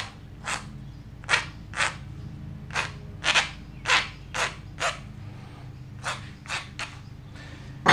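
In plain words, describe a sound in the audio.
A knife scrapes wood in short, repeated strokes.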